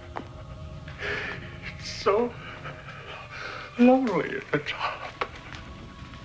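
An elderly man cries out in anguish close by.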